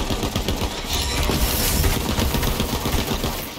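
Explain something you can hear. An electric blast crackles and booms.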